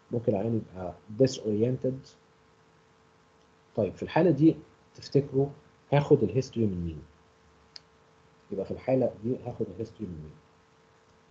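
A man speaks calmly into a microphone, heard as if over an online call.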